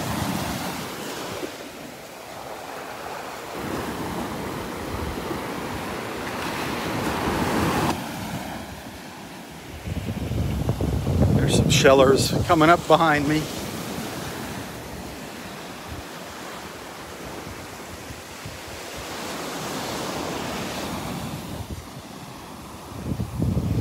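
Small waves break and wash up onto the shore in repeated surges.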